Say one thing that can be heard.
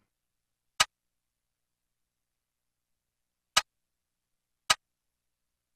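Short electronic menu blips sound a few times.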